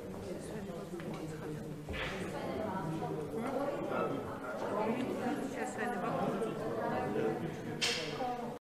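Several men and women talk at once in a large, echoing hall.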